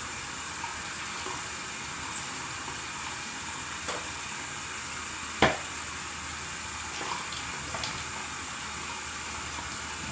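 A woman spits into a sink.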